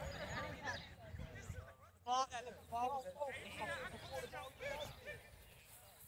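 Young women shout and call out to each other outdoors.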